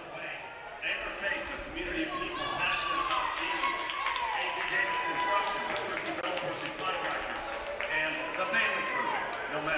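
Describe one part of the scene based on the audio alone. Young women shout a cheer in unison in a large echoing hall.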